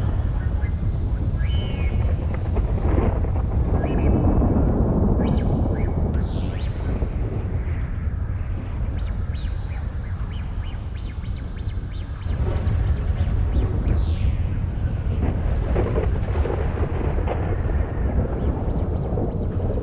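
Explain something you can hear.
Rain falls steadily outdoors in a strong wind.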